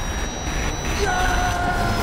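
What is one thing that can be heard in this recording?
A man roars fiercely.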